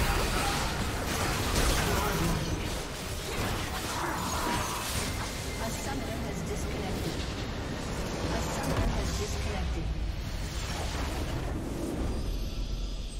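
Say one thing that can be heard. Game spells and attacks crash and boom in a chaotic battle.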